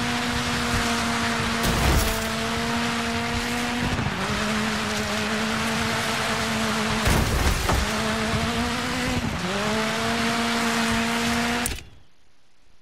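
Tyres skid and scrape on a wet road surface.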